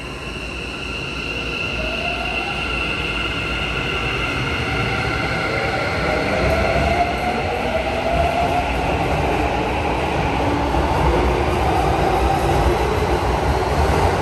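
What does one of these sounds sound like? A train pulls out of a station, its motor whining higher as it speeds up.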